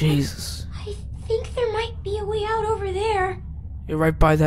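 A young girl speaks softly.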